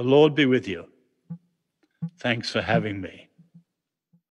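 An elderly man speaks warmly and calmly into a microphone.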